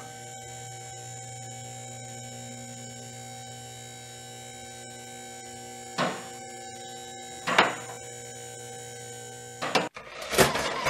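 A small toy motor whirs steadily as a turntable rotates.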